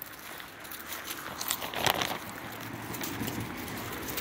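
Dry leaves rustle under small paws.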